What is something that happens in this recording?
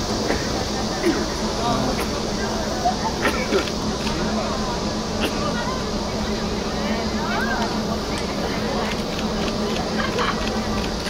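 A crowd of young fans calls out in the distance.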